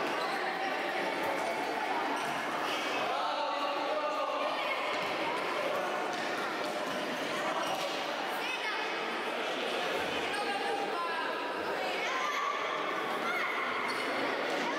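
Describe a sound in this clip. Young children shout in a large echoing hall.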